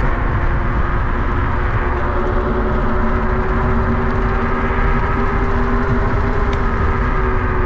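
Tyres hum steadily on smooth asphalt.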